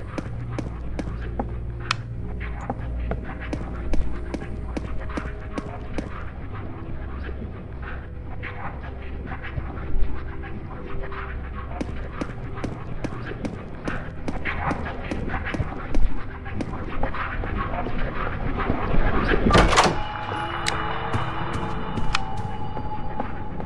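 Footsteps thud steadily across a wooden floor.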